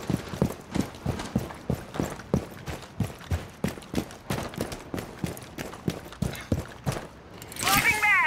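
Footsteps tap quickly and steadily on hard ground.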